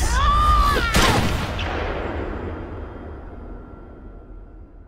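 A gunshot bangs loudly and rings out.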